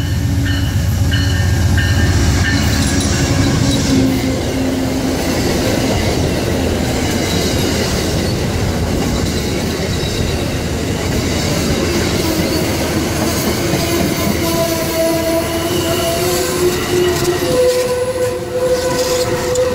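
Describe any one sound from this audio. Train wheels clatter and squeal loudly on the rails.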